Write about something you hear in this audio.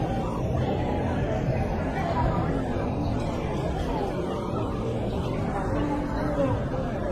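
A crowd of people chatters and murmurs nearby outdoors.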